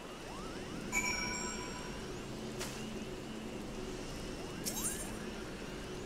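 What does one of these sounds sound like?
A magic spell shimmers and rings.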